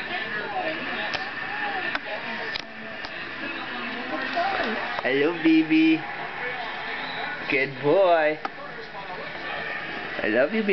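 A young woman coos and talks softly to a baby close by.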